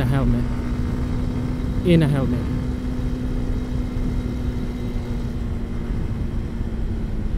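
A motorcycle engine hums steadily and briefly drops in pitch as it shifts gears.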